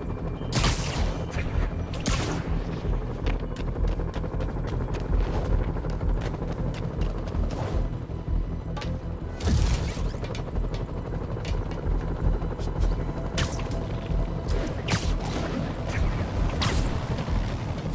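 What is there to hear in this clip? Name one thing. Sharp whooshing snaps of web lines come again and again.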